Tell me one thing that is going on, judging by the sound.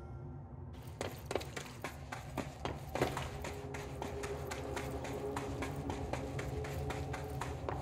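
Footsteps run quickly over rough ground.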